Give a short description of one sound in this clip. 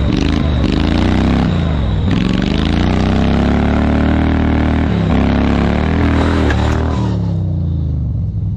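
A small engine roars and revs up and down loudly.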